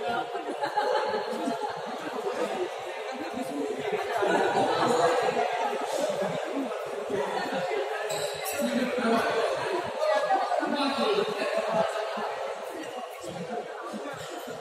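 Several men talk and call out in the hall.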